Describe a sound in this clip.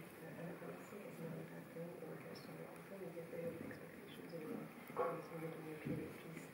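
A man speaks calmly through a microphone in a large hall.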